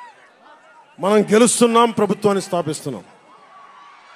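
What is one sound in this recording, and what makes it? A man shouts loudly into a microphone.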